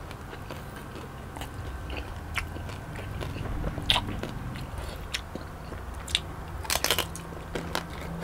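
Crispy pork skin crackles as a young man pulls it apart by hand.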